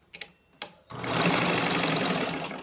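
A sewing machine whirs as it stitches.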